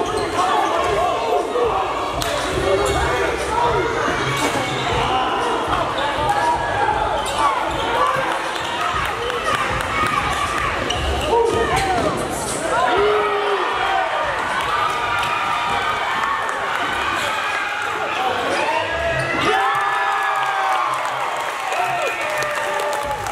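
Sneakers squeak sharply on a hard gym floor.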